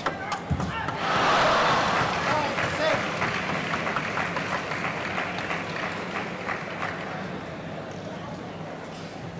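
A large crowd cheers and applauds loudly in an echoing hall, then slowly fades.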